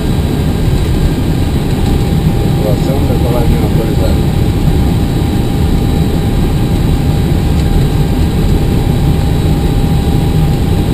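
Aircraft engines hum and roar steadily.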